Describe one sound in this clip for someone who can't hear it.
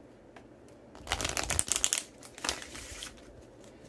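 Playing cards riffle and flutter as they are shuffled.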